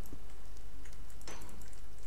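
Small blocks crack and break with short clicking taps.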